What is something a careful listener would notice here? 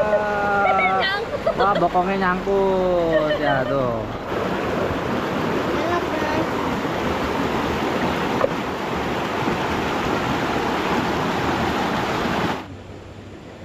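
A river rushes loudly over rocks.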